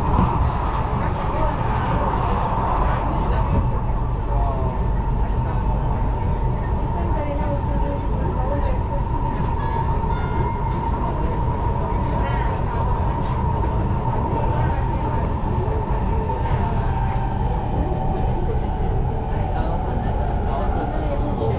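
A train rumbles steadily along the tracks with a loud, droning hum.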